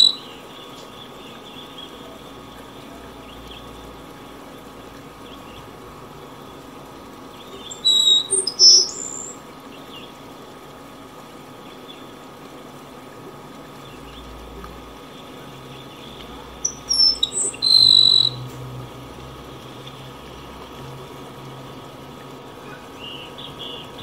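A shallow stream rushes and gurgles over rocks.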